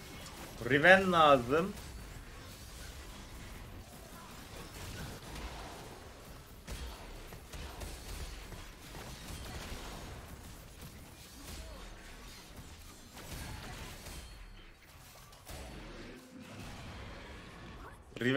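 Game sounds of battle effects whoosh and clash.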